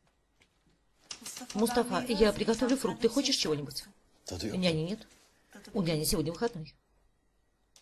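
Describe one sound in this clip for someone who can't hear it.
A young woman speaks softly and playfully nearby.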